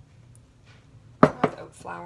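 Flour pours softly from a metal cup into a bowl.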